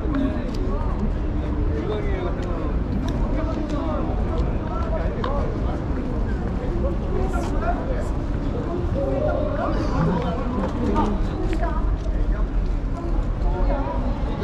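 Many adults talk in a crowd nearby, outdoors.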